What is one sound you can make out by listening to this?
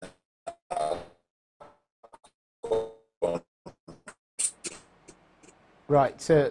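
A man speaks in bursts over a choppy online call.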